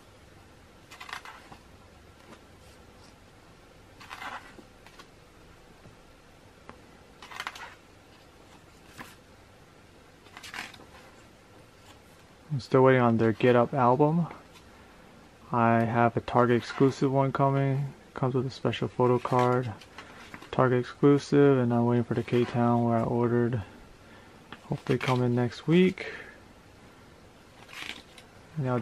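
Glossy paper pages rustle and flap as they are turned.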